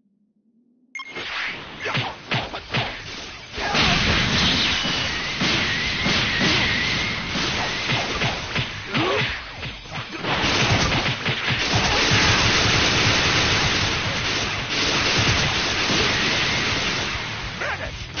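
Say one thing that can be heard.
Energy blasts roar and explode in a fight.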